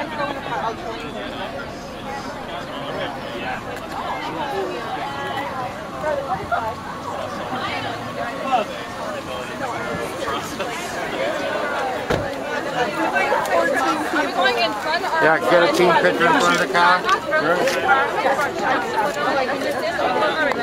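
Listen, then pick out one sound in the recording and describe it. A crowd of young men and women chatters and laughs nearby outdoors.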